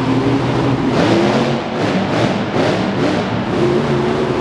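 A monster truck crushes metal car bodies with crunching thuds.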